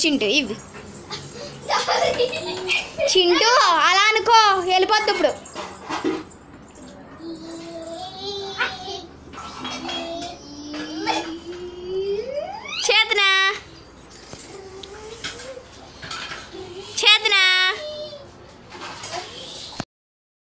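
A toddler squeals and babbles loudly close by.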